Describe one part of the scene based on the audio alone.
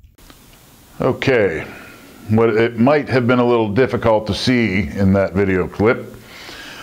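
A man speaks calmly and clearly close to a microphone.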